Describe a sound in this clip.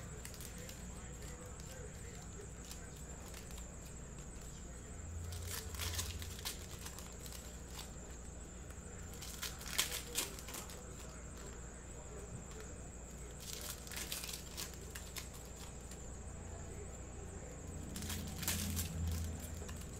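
Trading cards shuffle and flick against each other.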